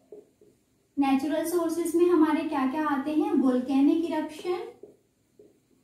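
A young woman speaks calmly and clearly, as if explaining a lesson.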